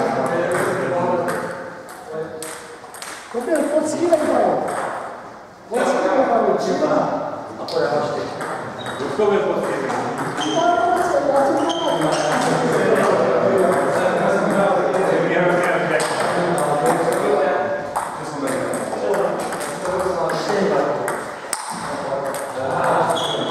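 Ping-pong balls click sharply on tables and paddles, echoing in a large hall.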